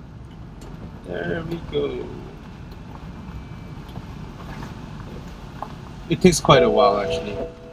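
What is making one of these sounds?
A man speaks calmly nearby inside a car.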